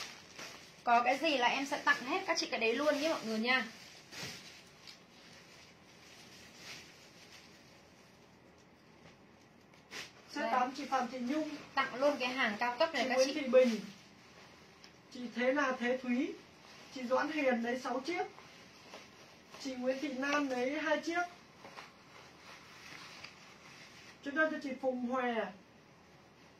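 A young woman talks in a lively way, close by, in short bursts with pauses.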